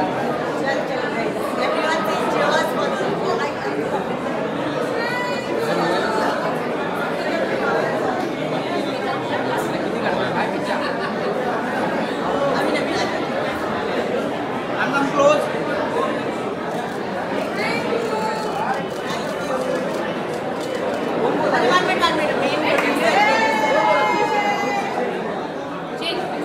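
Women talk and laugh close by with animation.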